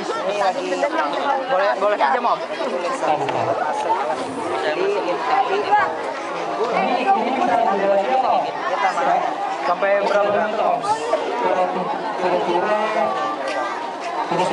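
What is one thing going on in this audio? A crowd of children chatter outdoors.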